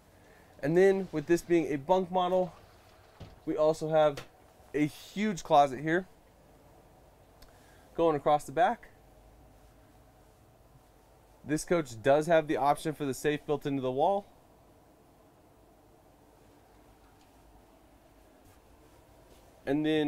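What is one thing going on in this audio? A man talks calmly close by, pausing now and then.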